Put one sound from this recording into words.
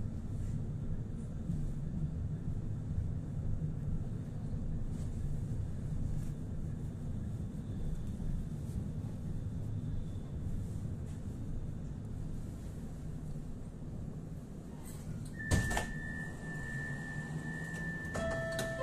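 A tram rumbles steadily along its tracks, heard from inside.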